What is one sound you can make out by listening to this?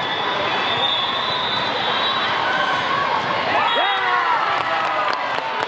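A crowd of voices chatters and echoes through a large hall.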